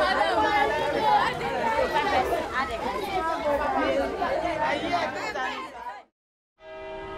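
A crowd of men and women chatters and calls out outdoors.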